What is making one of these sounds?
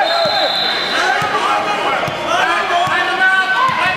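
A basketball is dribbled on the court.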